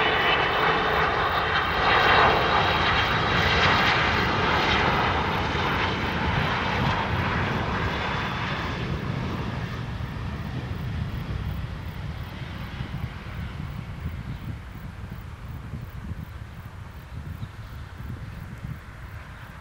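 A jet airliner's engines roar loudly close by, with a high whine, then slowly fade.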